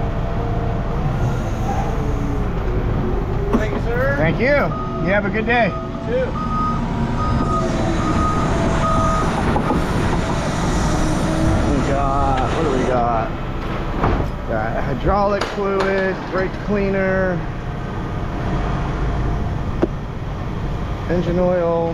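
A forklift engine rumbles steadily.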